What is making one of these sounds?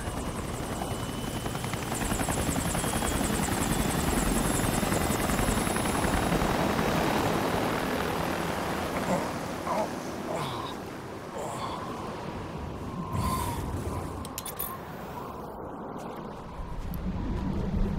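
A strong wind howls in a snowstorm.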